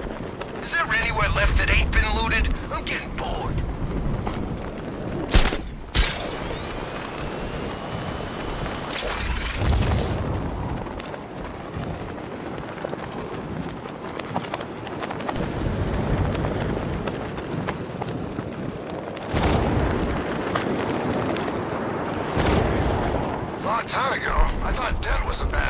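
Wind rushes loudly past, rising and falling.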